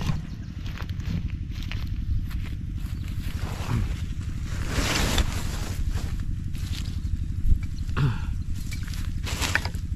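Footsteps rustle through dry grass close by.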